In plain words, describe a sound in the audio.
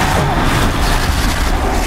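A beam weapon fires with a sharp electric crackle.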